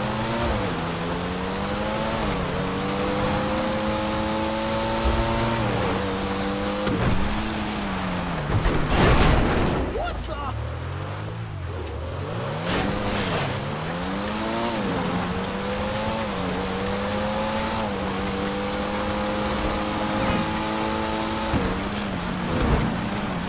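A sports car engine revs hard, shifting up through the gears.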